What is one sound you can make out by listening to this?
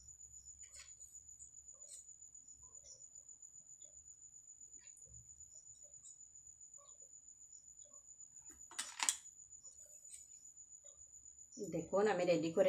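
Small plastic pieces click and tap softly against a plate.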